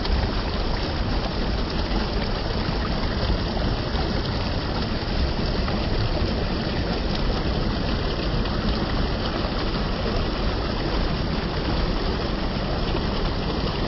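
A shallow stream rushes and splashes steadily over rocks close by.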